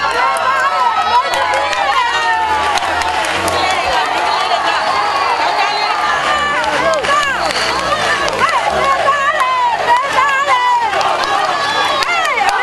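A large crowd of men and women shouts and calls out nearby.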